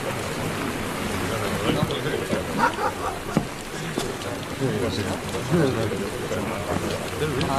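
A crowd of men talks and murmurs outdoors.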